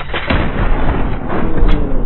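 A revolver fires a single loud shot.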